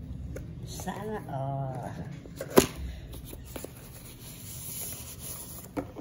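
Cardboard flaps rub and scrape as a box is opened.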